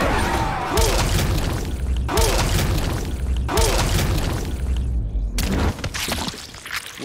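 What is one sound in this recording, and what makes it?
Heavy blows land with loud, booming thuds.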